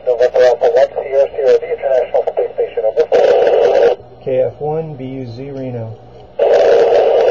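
A middle-aged man speaks close by into a handheld radio.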